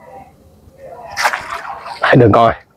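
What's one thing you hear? Water splashes as a fish thrashes in a net.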